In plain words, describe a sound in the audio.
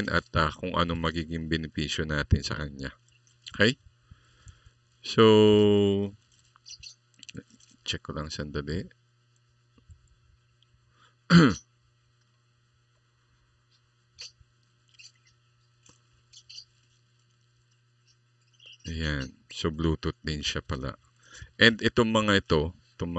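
A man talks calmly and close to a microphone, in bursts with pauses.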